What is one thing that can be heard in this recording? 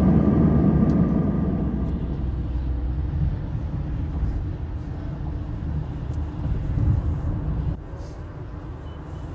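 A car rumbles along a road, tyres humming.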